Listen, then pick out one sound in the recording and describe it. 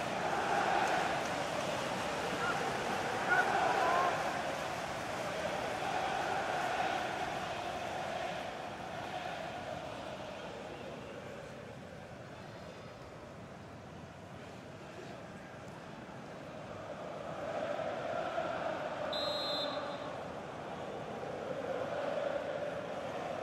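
A large stadium crowd roars and chants, swelling and fading.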